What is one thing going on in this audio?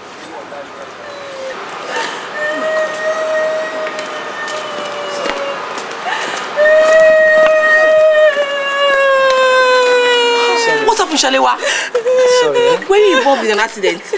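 A young woman sobs and wails.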